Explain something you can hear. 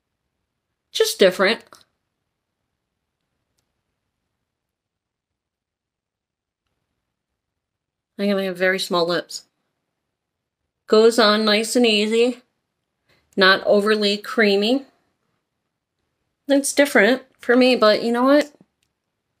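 A middle-aged woman talks calmly and close by, in short bursts with pauses.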